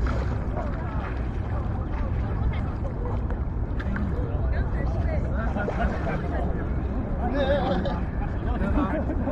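Wind rumbles across open water.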